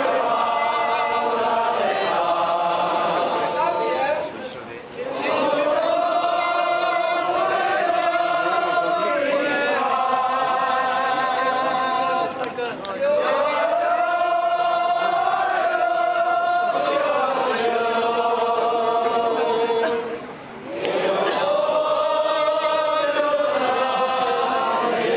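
A brass band plays a lively tune loudly in a large echoing hall, pausing briefly between phrases.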